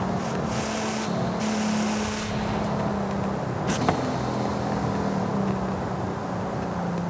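Tyres roar on a wet road.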